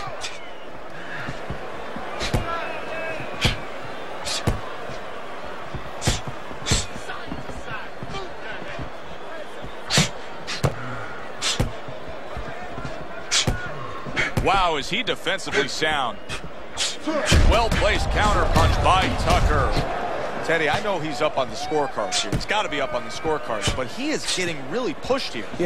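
Boxing gloves thud against bodies in sharp, repeated punches.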